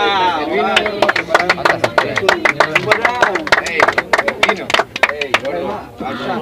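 People clap their hands in a quick rhythm.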